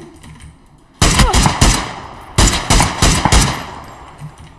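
Rifle shots crack loudly in quick succession.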